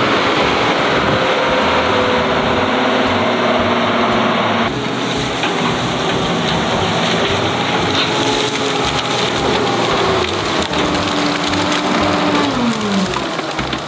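A heavy diesel engine rumbles and drones steadily nearby.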